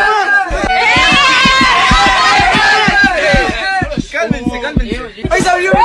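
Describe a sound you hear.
Young men shout and sing excitedly close by.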